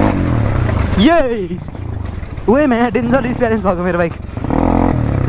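Another motorbike engine revs up and down just ahead.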